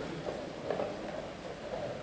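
A chess piece is set down on a wooden board with a soft click.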